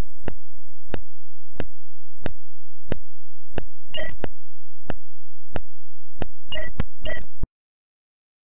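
Short electronic game blips sound in a steady, even rhythm, then stop.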